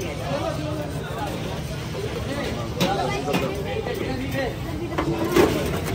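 Metal cans clink as they are set down on a metal counter.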